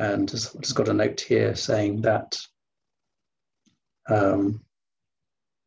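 A man speaks calmly into a microphone over an online call.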